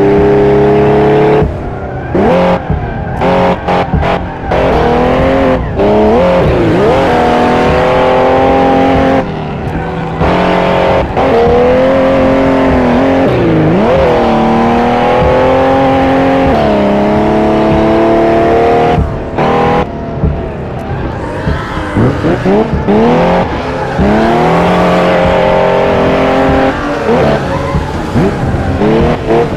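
A racing car engine roars, revving up and dropping sharply with each gear change.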